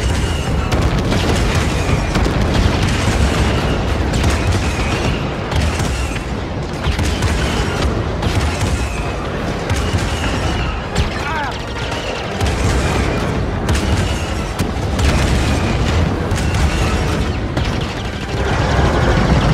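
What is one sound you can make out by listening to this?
An engine rumbles low and steady.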